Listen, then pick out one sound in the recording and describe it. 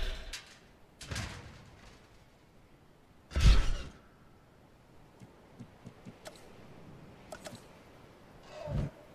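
Soft interface clicks and swooshes sound as menus open and close.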